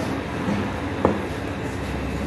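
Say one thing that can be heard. A brush taps against a metal tray.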